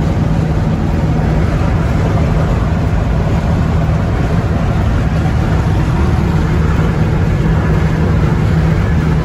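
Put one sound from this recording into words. Wind rushes past an open window.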